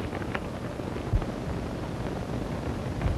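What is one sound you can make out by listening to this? Footsteps echo along a hard corridor.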